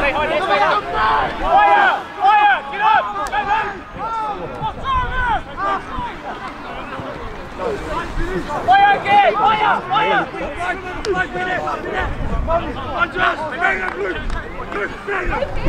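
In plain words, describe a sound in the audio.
Young men shout and call out to each other outdoors on an open field.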